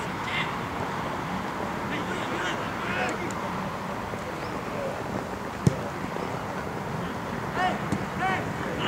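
Young men shout to each other from across an open field.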